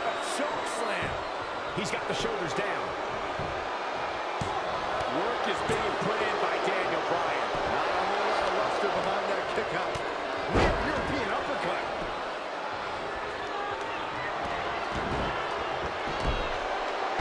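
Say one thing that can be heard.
Heavy thuds sound as wrestlers slam onto the ring mat.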